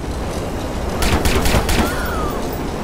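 A car window is struck and its glass shatters.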